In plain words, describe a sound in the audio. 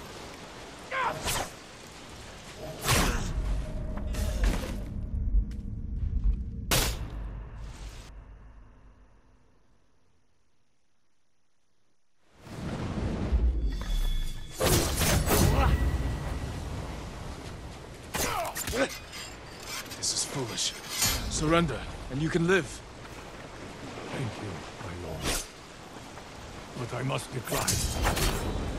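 Swords clash and clang sharply.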